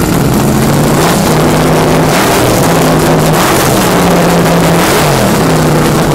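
A loud racing engine idles with a rough, lumpy rumble close by.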